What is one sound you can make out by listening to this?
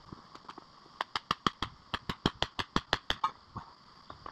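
A hammer strikes rock in quick, ringing blows, outdoors.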